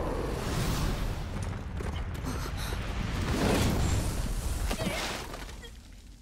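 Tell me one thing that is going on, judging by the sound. Loud rushing noise and rumble roar through the opening seconds.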